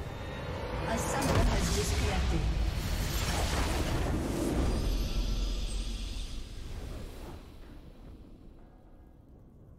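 A triumphant game fanfare bursts out with a loud whoosh, then fades away.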